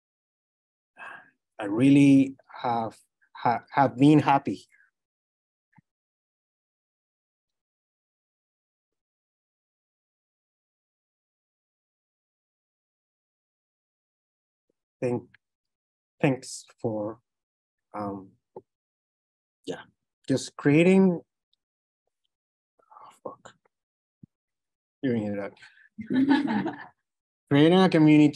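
A young man speaks calmly through an online call microphone.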